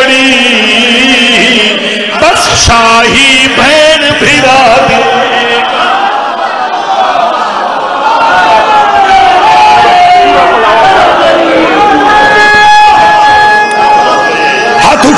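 A man chants loudly and mournfully through a loudspeaker.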